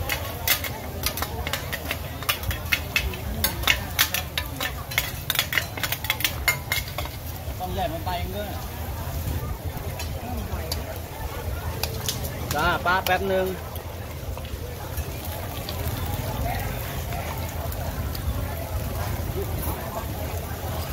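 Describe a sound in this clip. A busy outdoor crowd murmurs in the background.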